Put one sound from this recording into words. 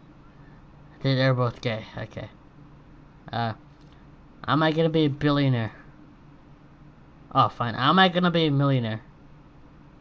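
A man speaks calmly and hesitantly, close by.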